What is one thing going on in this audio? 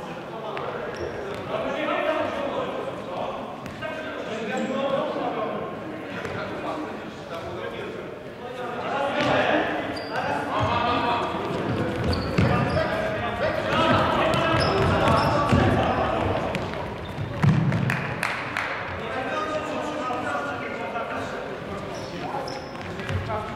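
Sports shoes squeak sharply on a wooden floor.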